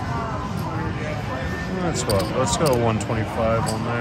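Casino chips click as they are set down on a table.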